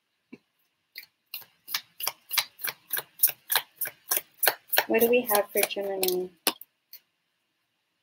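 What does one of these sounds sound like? Playing cards flick and riffle in quick, even clicks.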